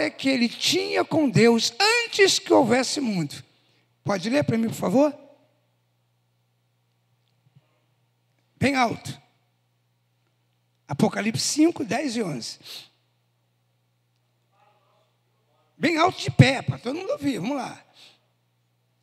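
A man speaks with animation into a microphone, heard through loudspeakers, with pauses between phrases.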